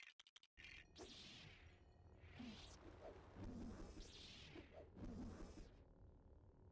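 Lightsabers hum and swoosh as they swing.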